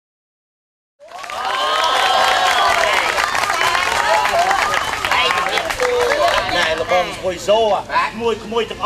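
A crowd cheers and chatters loudly outdoors.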